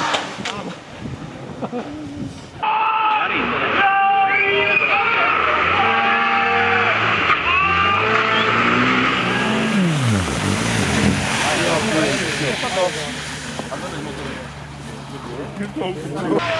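Tyres hiss and spray over wet, slushy road.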